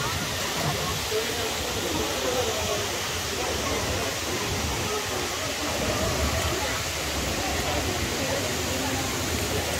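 A fountain splashes steadily nearby.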